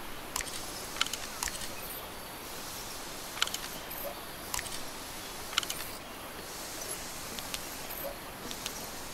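Switches on a machine click sharply now and then.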